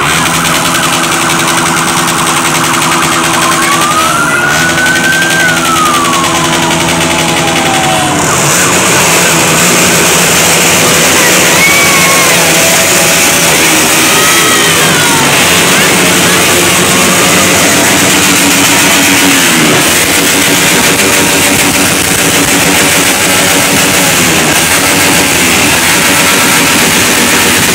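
Many motorcycle engines roar and buzz as a convoy rides past.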